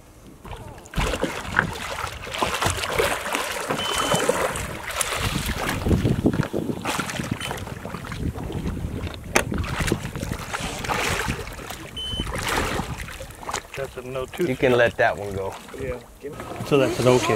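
Water sloshes against a boat's hull.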